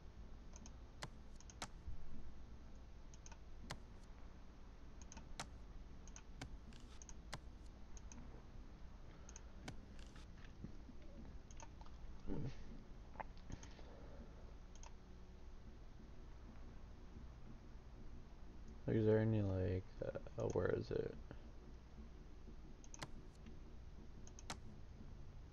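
Short menu clicks tick as options are selected.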